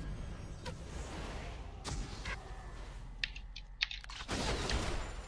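Spell and combat sound effects burst and zap in quick succession.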